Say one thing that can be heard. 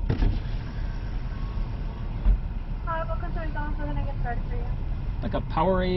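A car engine idles, heard from inside the car.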